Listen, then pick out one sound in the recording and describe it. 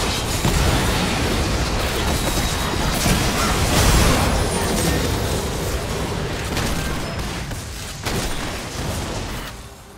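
Spell blasts and hits crackle and boom in a fight.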